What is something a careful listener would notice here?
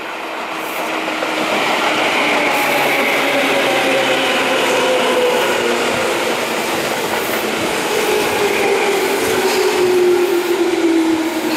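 Train wheels squeal on the rails with a long, slowly falling whine.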